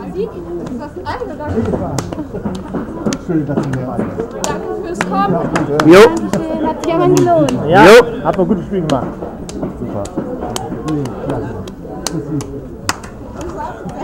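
Hands slap together in high fives.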